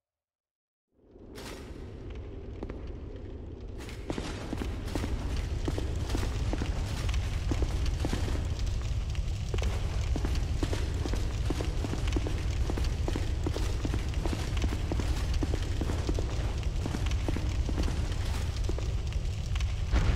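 Armoured footsteps run quickly across stone.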